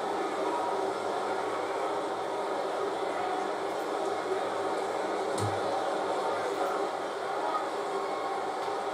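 A large crowd murmurs steadily in an echoing arena.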